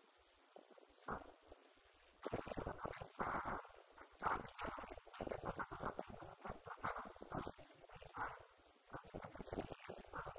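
A woman speaks into a microphone over a loudspeaker in a large echoing hall.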